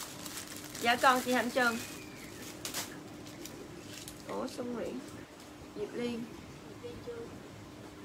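Plastic wrapping crinkles in hands.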